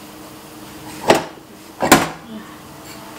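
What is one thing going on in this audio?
A metal pan clanks as it is lifted out of a bread machine.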